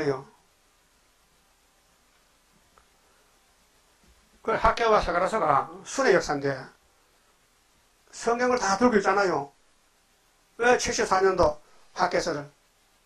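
An elderly man preaches forcefully into a microphone, in short bursts with pauses.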